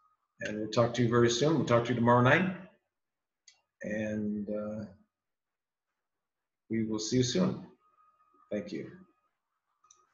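A middle-aged man speaks calmly into a microphone close by, in short phrases with pauses.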